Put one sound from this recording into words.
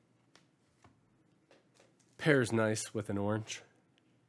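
Fingers handle a stiff paper card with faint rustles.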